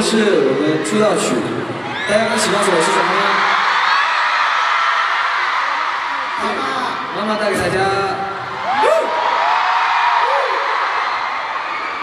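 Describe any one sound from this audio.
A large crowd screams and cheers loudly throughout.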